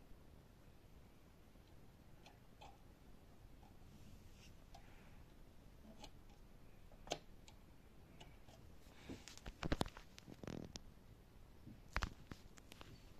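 A plastic connector clicks and scrapes as it is pushed into a socket.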